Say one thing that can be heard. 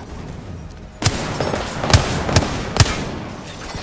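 A gun fires several loud, sharp shots.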